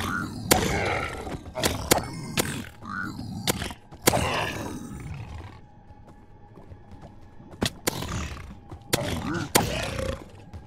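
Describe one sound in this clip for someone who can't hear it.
A pig-like creature snorts and grunts angrily.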